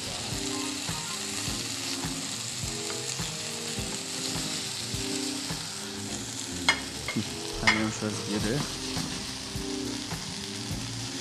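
Metal tongs clatter against a pan.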